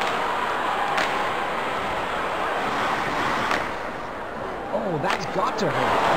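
A hockey stick slaps a puck with a sharp crack.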